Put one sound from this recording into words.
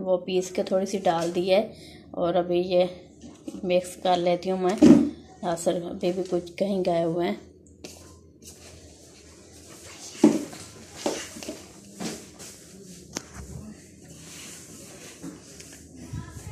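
Hands squish and rustle through crumbly dough in a bowl.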